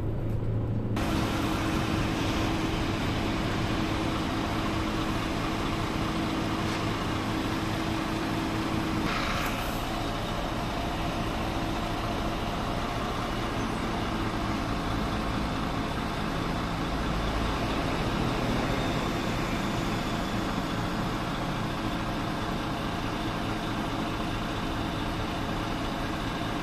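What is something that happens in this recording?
A bus engine idles nearby with a steady low rumble.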